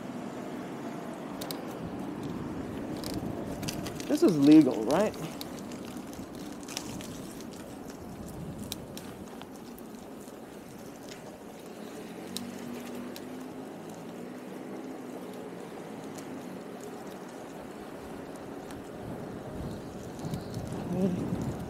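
Bicycle tyres roll over asphalt.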